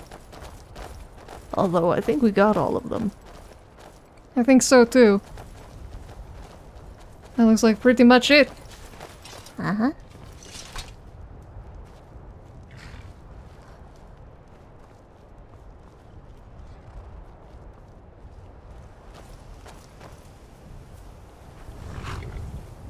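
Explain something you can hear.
Footsteps crunch on grass and stone.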